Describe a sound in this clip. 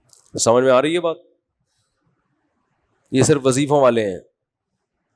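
A middle-aged man speaks calmly and closely into a microphone, in short phrases with a pause between them.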